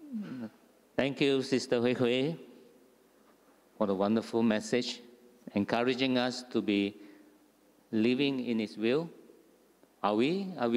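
A man speaks calmly through a microphone, heard over loudspeakers in an echoing hall.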